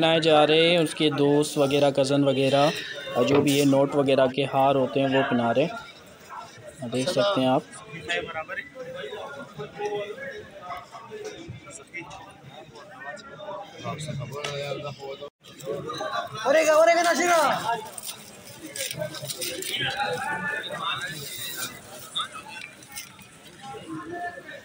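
Young men chatter and call out nearby in a crowded room.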